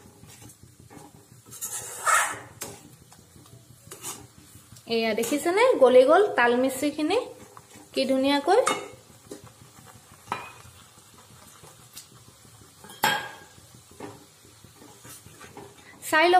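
Milk bubbles and sizzles gently in a pan.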